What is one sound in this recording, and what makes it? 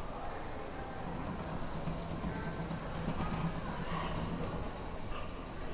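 An escalator hums steadily in a large echoing hall.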